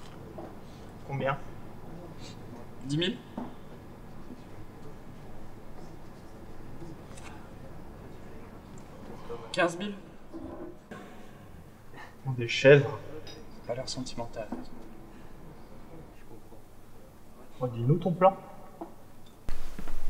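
Young men talk casually nearby, in short exchanges.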